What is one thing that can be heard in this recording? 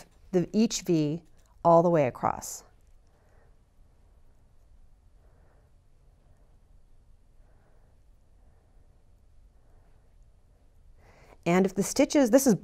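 A woman speaks calmly and clearly into a microphone, close by.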